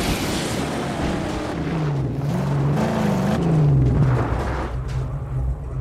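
A car engine roars steadily as the car drives over rough ground.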